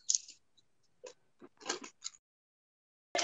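Pastry sheets rustle softly as they are handled.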